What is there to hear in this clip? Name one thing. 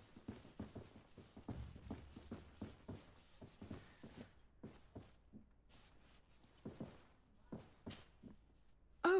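Boots thump steadily on a wooden floor.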